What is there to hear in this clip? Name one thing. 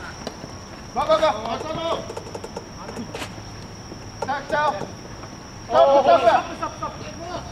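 Young men shout across an open ball field.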